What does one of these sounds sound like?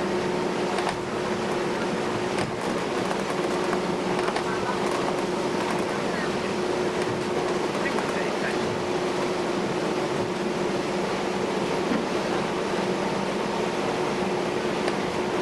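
A ship's engine drones steadily with a loud, low hum.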